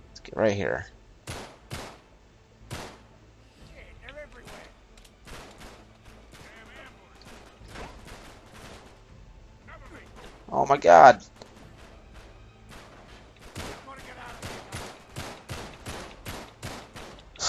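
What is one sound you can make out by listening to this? Pistol shots ring out in quick bursts, echoing.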